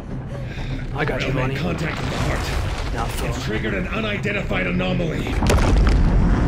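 A man speaks urgently through a radio.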